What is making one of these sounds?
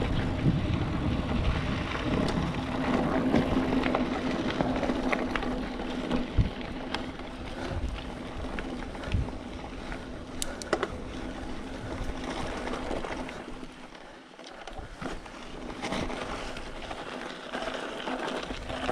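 A bicycle frame rattles and clicks over bumps.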